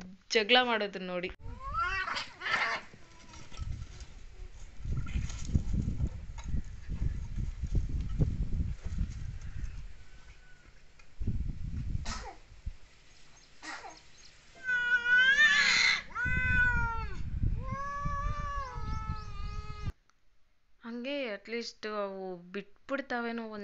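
Cats yowl and growl at each other loudly, close by.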